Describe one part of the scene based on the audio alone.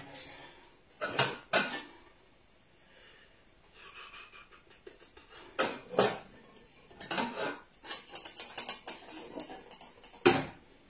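Metal pots clank and clatter against each other.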